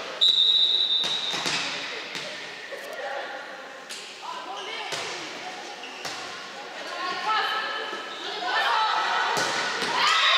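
A volleyball is struck with sharp smacks that echo.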